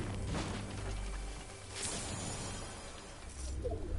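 A treasure chest bursts open with a bright chime.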